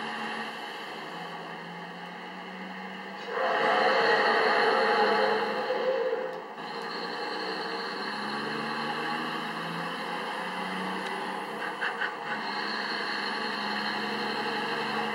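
A truck engine rumbles steadily as the truck drives along a road.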